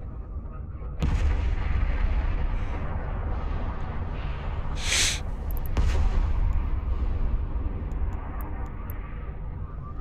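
A huge explosion booms and rumbles deeply.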